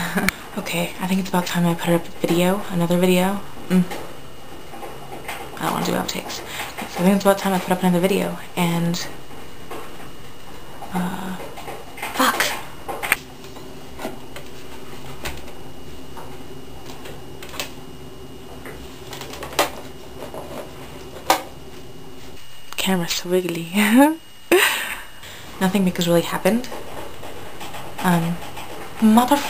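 A young woman speaks casually and close up into a webcam microphone, with pauses.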